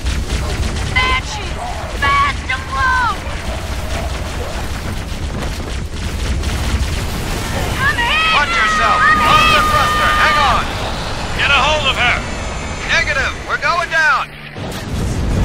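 Plasma guns fire with rapid buzzing zaps.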